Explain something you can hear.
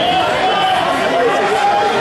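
A man talks closely and urgently to a young wrestler.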